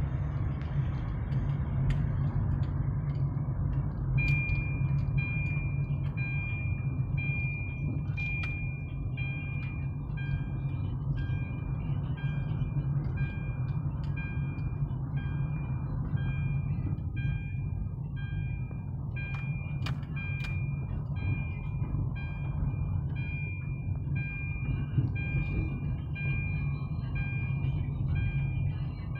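A car engine hums steadily from inside the car as it drives slowly.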